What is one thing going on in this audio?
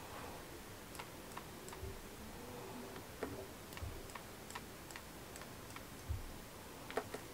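A paintbrush taps and clicks against a palette of watercolour pans.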